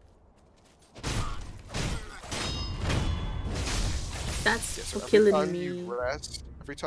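Swords clash and slash in quick bursts.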